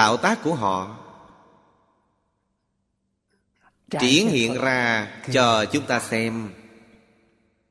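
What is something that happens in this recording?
An elderly man speaks calmly and warmly into a microphone, with pauses between phrases.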